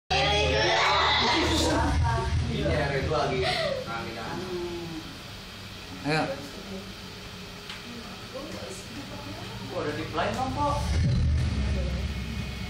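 Several young women talk and laugh together close by.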